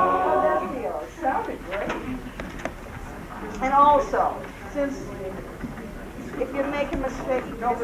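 A woman speaks with animation to a group.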